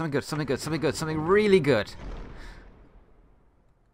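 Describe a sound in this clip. A heavy wooden chest creaks open.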